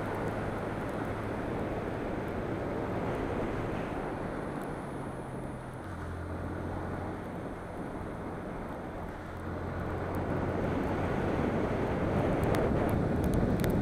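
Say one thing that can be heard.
Wind rushes past the rider.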